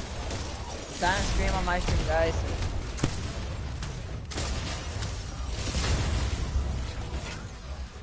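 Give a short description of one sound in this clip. Explosions boom and crackle in a video game.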